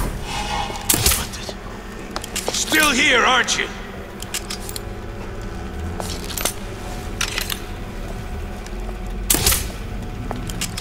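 A crossbow twangs as it fires a bolt.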